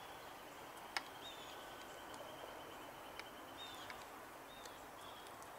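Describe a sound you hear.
A golf club strikes a ball with a short crisp click.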